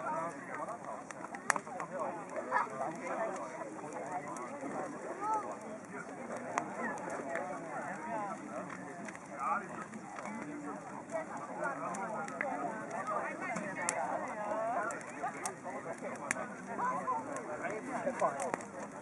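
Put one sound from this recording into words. A crowd of people chatters in the distance.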